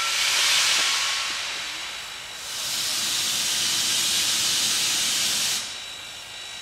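Steam hisses loudly from a nearby locomotive.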